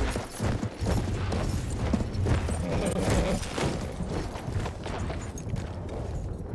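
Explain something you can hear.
A tank engine rumbles low and close.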